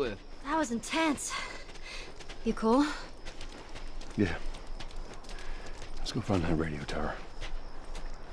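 A young girl speaks quietly.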